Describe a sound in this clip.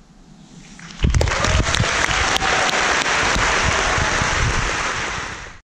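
A large audience applauds loudly in a big echoing hall.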